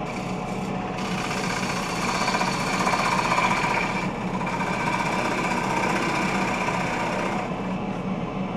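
A gouge hisses as it shaves a spinning wooden bowl.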